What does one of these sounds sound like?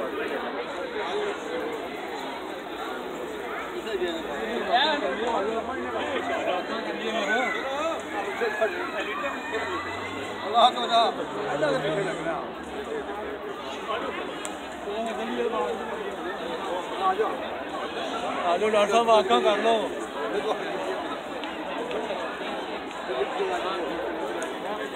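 A crowd of men chatters nearby outdoors.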